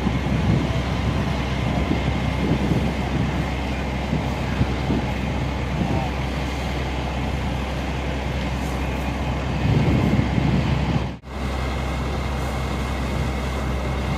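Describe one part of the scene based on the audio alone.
Water hisses from a fire hose spraying onto grass.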